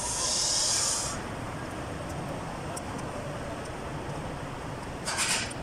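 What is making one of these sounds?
A metal wrench clicks and scrapes against an engine part.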